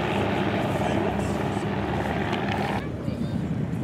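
Small propeller planes drone overhead.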